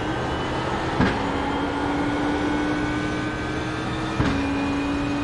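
A racing car's gearbox shifts up with a sharp clunk.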